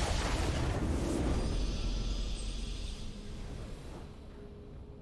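A triumphant game victory sound swells and then fades away.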